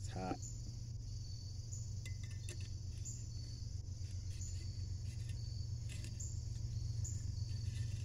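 A pot clicks and knocks against a camping stove.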